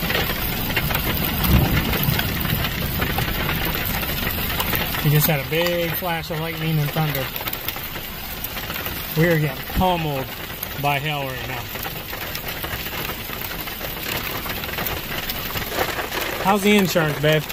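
Hail pellets patter on grass outdoors.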